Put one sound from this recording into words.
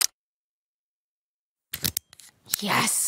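A combination lock clicks as its dials turn.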